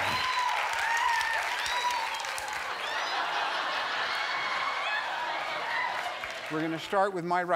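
A large studio audience cheers and screams loudly.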